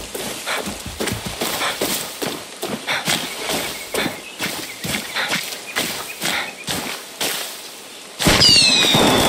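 Footsteps crunch and leaves rustle as someone walks through dense undergrowth.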